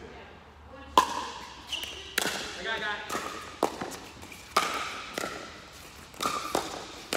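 Paddles hit a plastic ball with sharp hollow pops in a large echoing hall.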